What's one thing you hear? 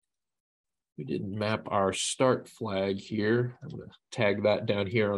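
A man speaks calmly and close into a microphone.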